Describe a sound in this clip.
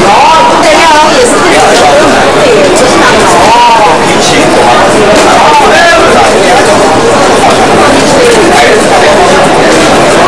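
A crowd of children and adults chatter and call out nearby.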